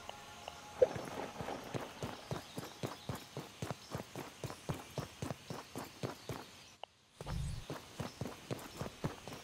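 Footsteps patter quickly and evenly on stone.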